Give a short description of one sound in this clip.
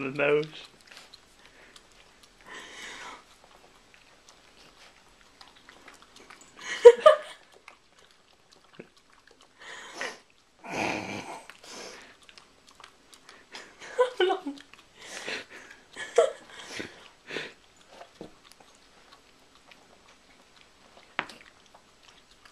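A small terrier licks a couch cushion with wet smacking sounds.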